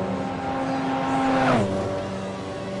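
A racing car zooms past with a sharp drop in pitch.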